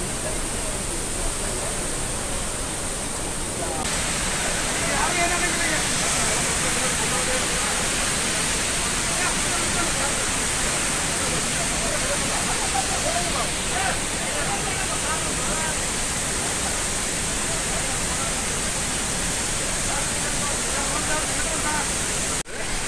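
A waterfall roars with a steady, heavy rush of water.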